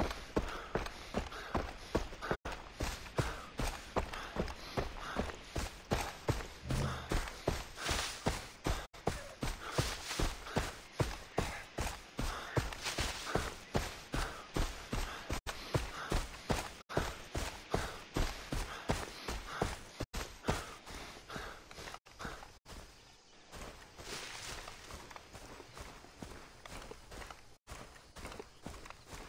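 Quick footsteps rustle through grass and leafy undergrowth.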